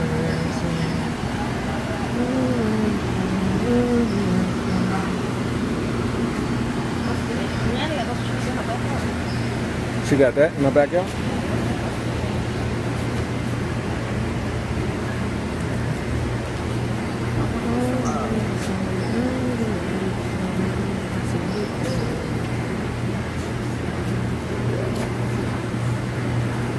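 A refrigeration unit hums steadily.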